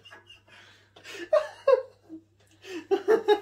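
Young men laugh together close by.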